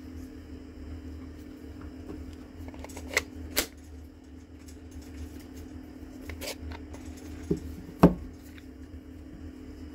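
Plastic parts knock and rattle in hands.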